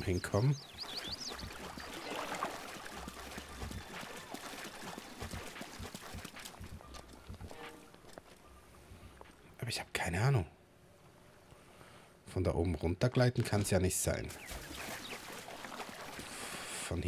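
Water splashes as footsteps wade through shallows.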